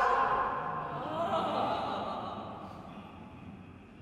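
An ensemble of singers and instruments performs in a large echoing hall.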